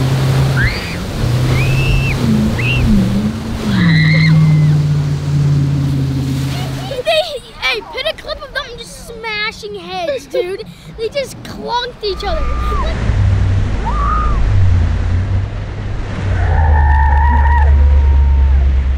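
Water sprays and splashes.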